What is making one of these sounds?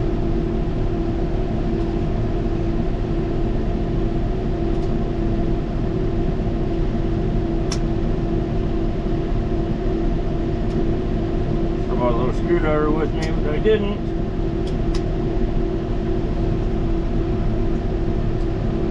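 A tractor engine hums steadily and closely.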